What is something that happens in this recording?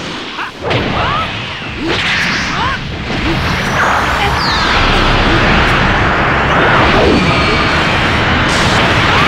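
A powerful energy aura roars and crackles.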